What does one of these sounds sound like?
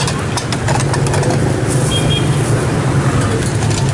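A metal ladle scrapes and clinks against a pot of soup.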